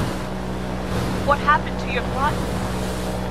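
A young woman asks a question with surprise.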